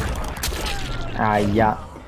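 Blood splatters wetly.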